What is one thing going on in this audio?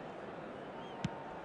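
A football is kicked with a sharp thump.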